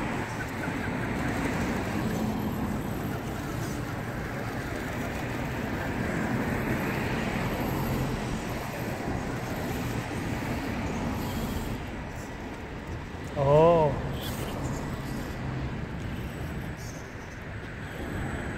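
Small electric motors whine as toy cars drive.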